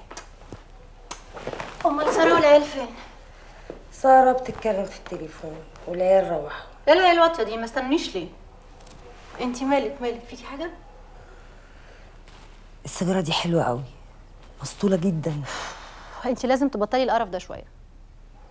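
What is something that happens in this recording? Another young woman answers sharply, close by.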